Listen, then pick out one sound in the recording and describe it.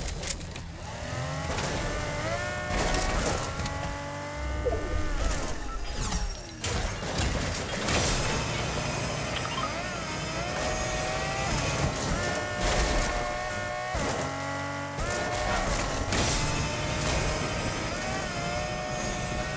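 A car engine hums and revs as a car drives fast.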